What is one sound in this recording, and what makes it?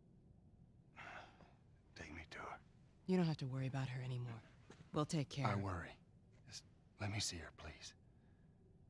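A man speaks urgently and pleads.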